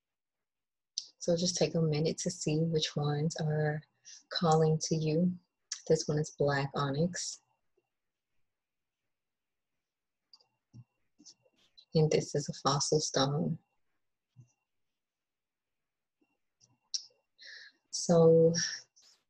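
A young woman talks calmly and close by, with pauses.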